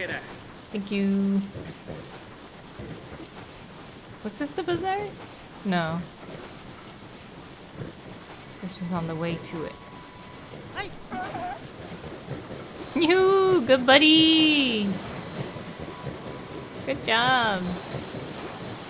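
A young woman talks animatedly into a microphone, with excited rising calls.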